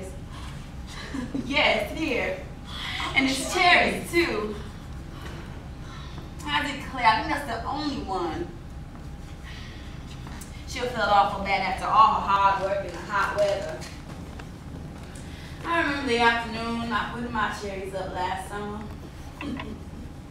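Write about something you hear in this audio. Women speak with feeling, heard from a distance in an echoing hall.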